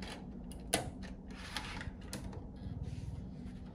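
A drive tray snaps shut.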